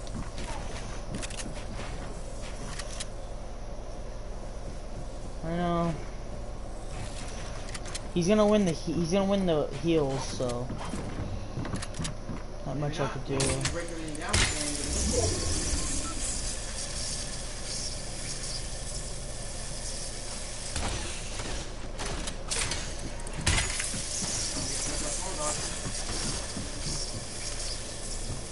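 Wooden and stone building pieces clatter and thud into place in quick bursts.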